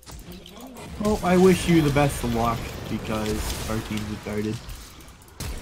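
Magic blasts and blows clash in a video game fight.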